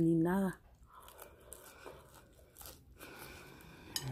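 A woman chews food with soft crunching.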